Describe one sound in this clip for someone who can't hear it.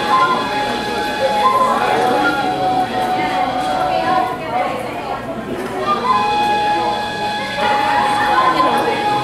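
A small wind instrument plays a slow melody through a microphone.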